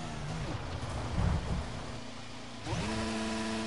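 Gravel and dirt rattle under a car's tyres as it slides off the track.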